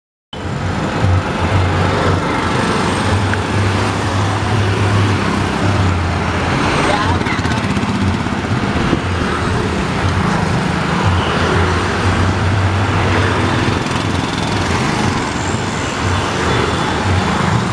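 A vehicle's engine hums low and steady nearby.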